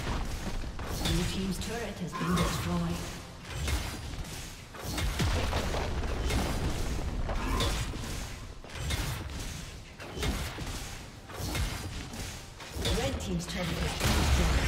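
Magic spells crackle and blast during a fantasy battle.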